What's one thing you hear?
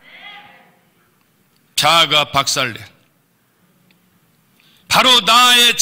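An elderly man speaks slowly and with emphasis through a microphone.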